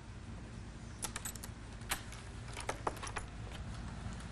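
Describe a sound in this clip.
A door latch rattles and clicks.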